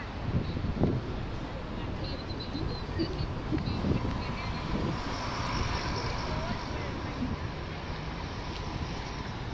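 Water laps gently against a stone wall.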